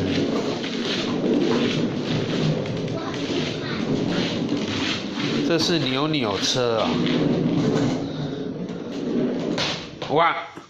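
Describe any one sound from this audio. Plastic wheels rumble steadily across a wooden floor.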